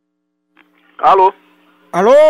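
A man speaks briefly over a phone line.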